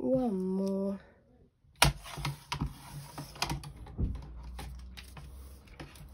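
A blade slides along a paper trimmer.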